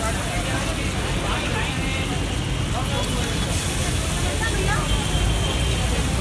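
Chopped tomatoes drop onto a hot griddle with a soft patter.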